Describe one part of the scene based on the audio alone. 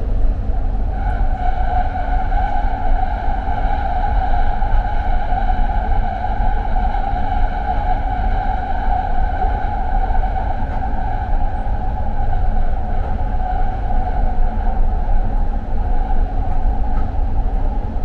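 A train's electric motor hums with a steady whine.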